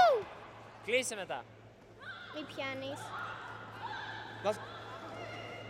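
Young fighters let out sharp, loud shouts in a large echoing hall.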